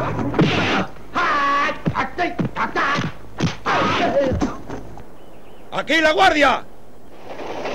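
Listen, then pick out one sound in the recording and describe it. A man shouts sharply.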